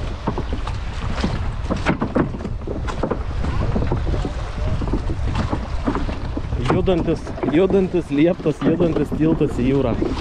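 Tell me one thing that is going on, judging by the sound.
Water splashes and laps against a wooden pier.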